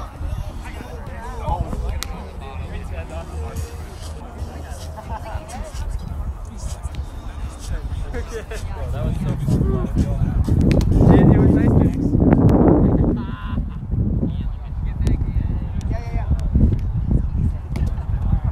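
A ball smacks sharply against a taut net.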